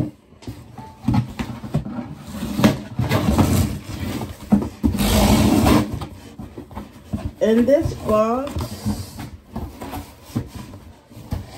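A cardboard box rustles and scrapes as it is handled and opened.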